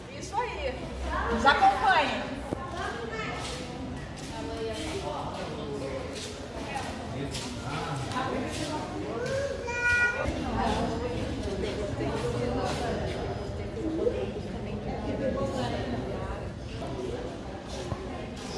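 Many people chatter and talk nearby in an echoing hall.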